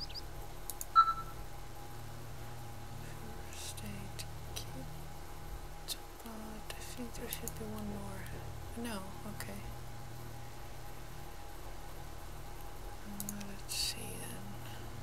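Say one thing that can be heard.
Soft interface clicks sound as menu options are picked.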